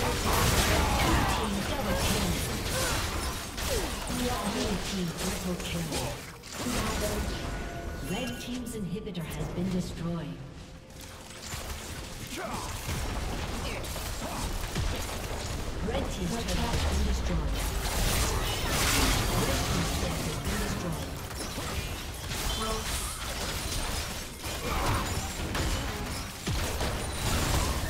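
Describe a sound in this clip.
Fantasy battle sound effects crackle, whoosh and clash.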